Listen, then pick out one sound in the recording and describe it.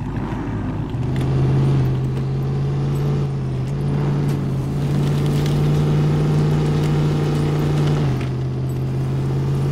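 A truck engine rumbles and revs as the truck drives.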